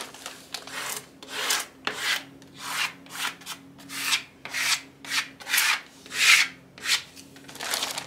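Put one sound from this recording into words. A hand rubs and smooths a plastic sheet in quick, even strokes.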